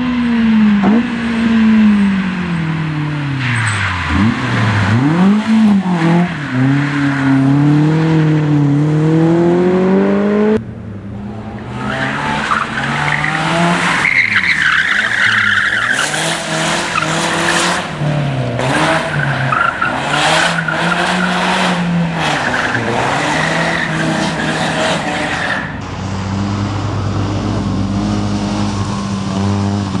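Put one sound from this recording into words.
A racing car engine revs hard, rising and falling in pitch as the car shifts gears.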